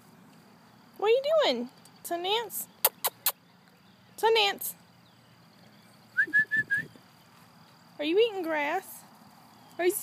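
A woman talks close by in a high, playful voice.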